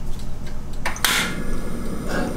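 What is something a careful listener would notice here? A gas burner clicks and whooshes alight.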